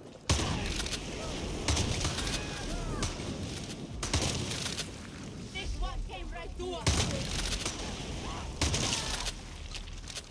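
A shotgun fires loud blasts several times.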